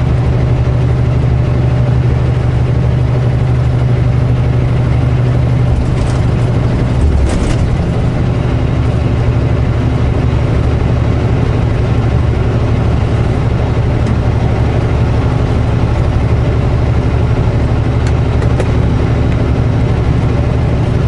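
A truck engine hums steadily and loudly from inside the cab.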